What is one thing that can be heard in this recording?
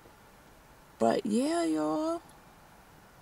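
A young woman sings a long drawn-out note close by.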